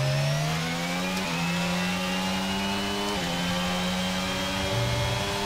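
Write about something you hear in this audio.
A racing car engine screams at high revs, rising in pitch and dipping briefly at each gear change.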